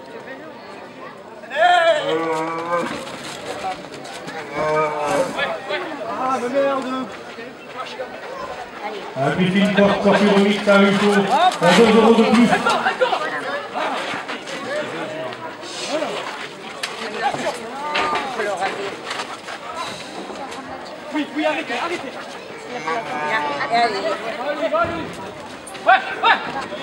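A crowd shouts and cheers in an open arena.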